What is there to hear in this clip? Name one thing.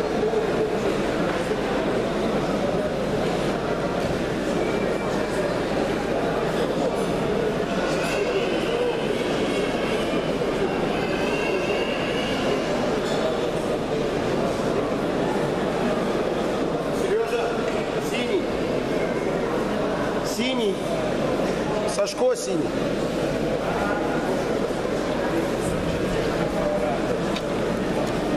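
A crowd of people chatter throughout a large echoing hall.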